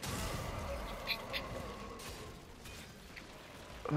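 Flames roar from a weapon in a burst.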